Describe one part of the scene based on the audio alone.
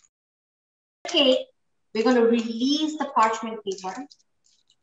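A woman speaks calmly and clearly close to a microphone.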